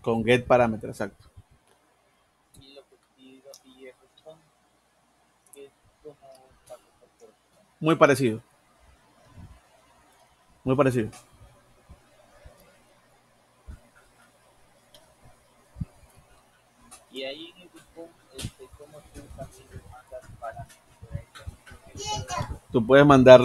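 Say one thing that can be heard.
A mouse clicks now and then.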